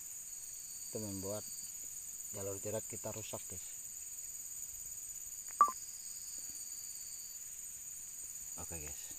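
A middle-aged man speaks quietly, close by.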